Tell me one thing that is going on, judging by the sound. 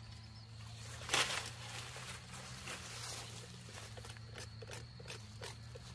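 Dry leaves rustle and scrape as a long cane stalk is dragged through them.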